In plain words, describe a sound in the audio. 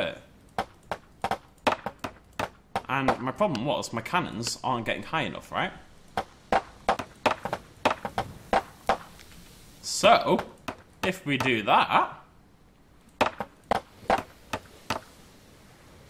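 Short wooden knocks sound in quick succession as pieces are set in place.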